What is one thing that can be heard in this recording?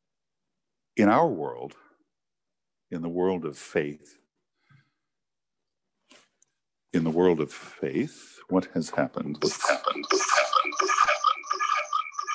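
An older man speaks slowly and clearly into a microphone, with echo around him.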